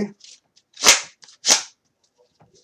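Hands clap sharply.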